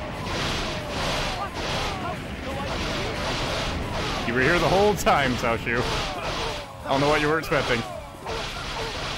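Swords slash and clang in a fast battle.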